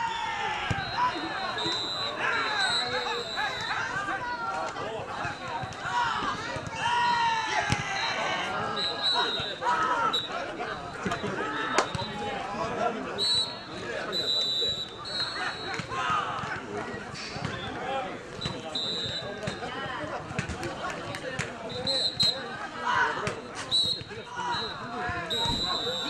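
A ball thuds against feet as players kick it over a net.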